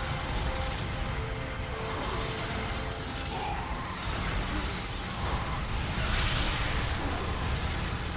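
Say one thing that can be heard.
Explosions boom and rumble in a battle.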